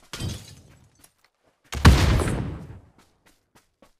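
Gunshots and explosions boom in a game.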